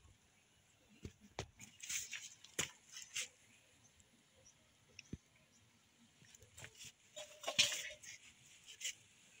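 Leaves and twigs rustle as a hand reaches through them.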